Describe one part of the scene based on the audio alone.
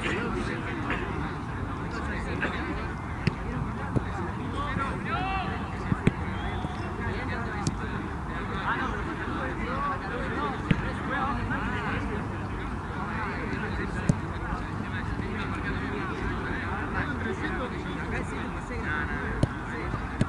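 A group of men talk and call out in the distance, outdoors.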